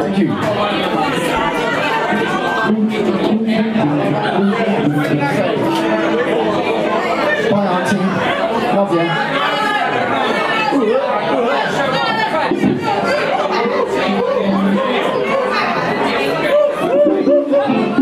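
A live band plays loudly.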